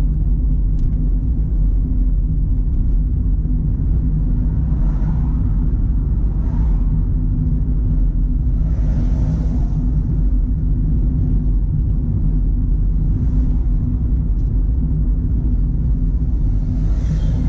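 A car engine hums steadily with road and wind rumble inside the cabin.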